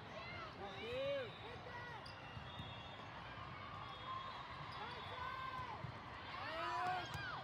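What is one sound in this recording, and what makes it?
A crowd of young women and girls shouts and cheers in a large echoing hall.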